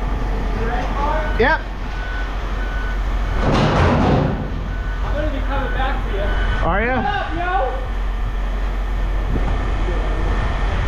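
A machine hums steadily close by.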